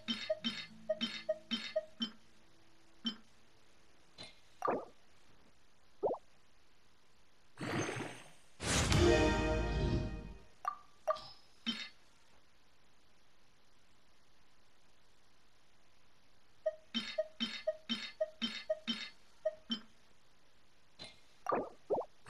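Soft game menu clicks tick quickly, one after another.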